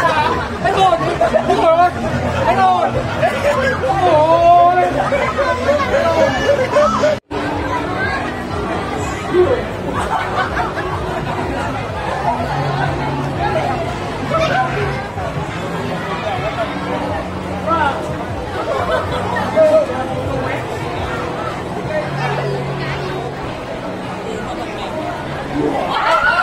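A crowd chatters all around outdoors.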